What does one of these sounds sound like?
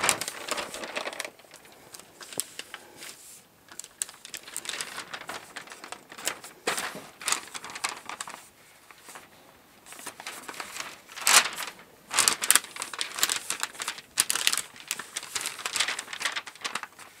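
Paper rustles and crinkles as it is folded and smoothed.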